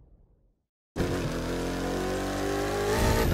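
A monster truck engine roars.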